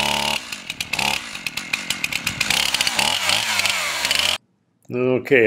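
A chainsaw engine runs and idles up close.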